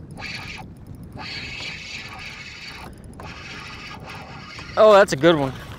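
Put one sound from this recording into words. A fishing reel clicks and whirs as a line is wound in.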